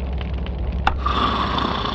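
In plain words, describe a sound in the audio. A single click sounds.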